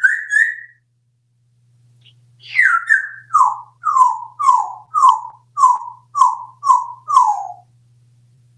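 A parrot whistles a repeated falling call, close by.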